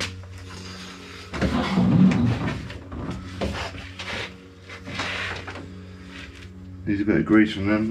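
A glass window pane scrapes against a door frame.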